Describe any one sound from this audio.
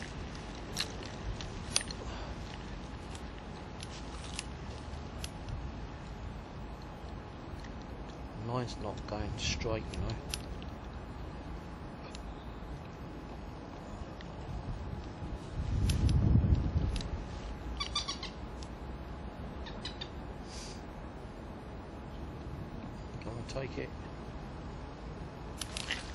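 Wind rumbles outdoors, with a stronger gust midway.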